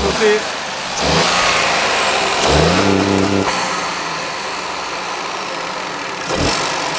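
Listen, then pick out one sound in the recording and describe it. A car engine revs under the hood.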